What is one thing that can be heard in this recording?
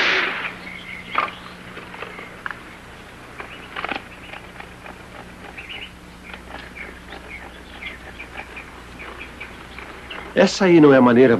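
A man mutters quietly to himself.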